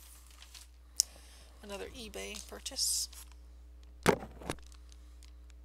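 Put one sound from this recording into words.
A plastic package crinkles as it is handled.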